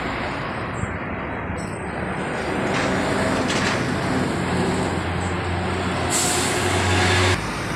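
A car engine idles close by with a steady low hum.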